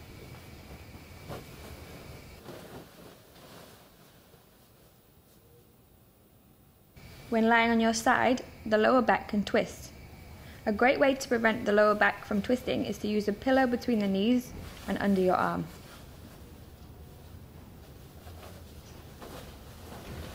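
Bedding rustles softly as a man shifts on a bed.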